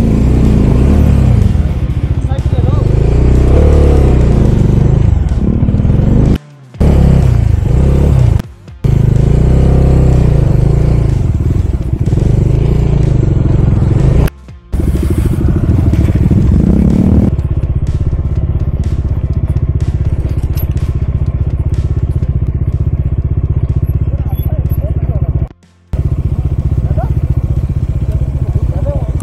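A motorcycle engine rumbles and revs close by.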